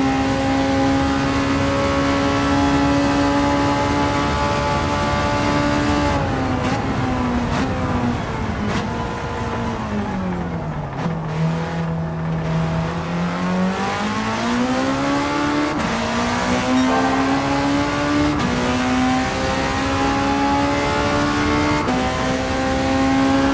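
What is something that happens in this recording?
A racing car engine roars at high speed, drops in pitch as it slows for a corner, then climbs again through quick gear changes.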